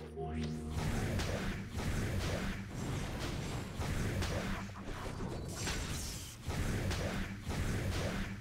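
Sword slashes and magic blasts whoosh and crash in quick succession.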